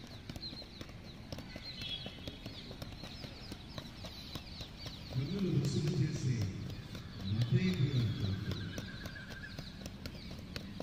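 A football thuds against feet as it is juggled.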